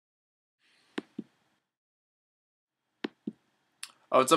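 A game menu gives short, soft clicking blips.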